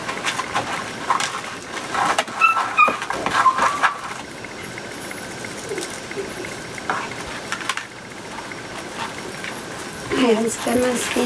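Plastic mesh ribbon rustles and crinkles as it is handled.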